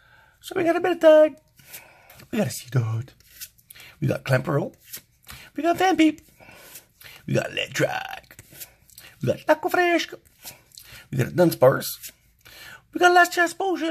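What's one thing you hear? Playing cards slide and flick against each other.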